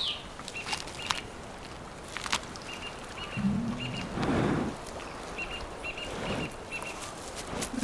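A bear tears and crunches through tough plant leaves close by.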